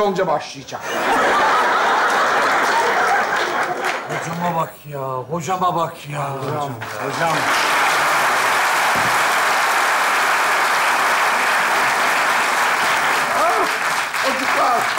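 A large audience laughs and applauds loudly.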